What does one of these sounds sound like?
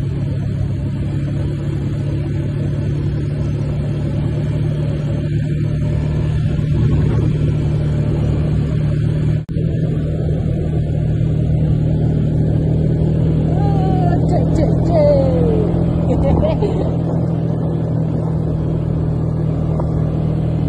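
An all-terrain vehicle's engine hums steadily as it drives over a dirt track.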